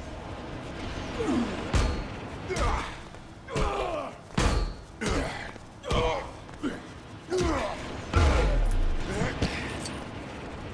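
Heavy blows land with sharp whooshing impacts, one after another.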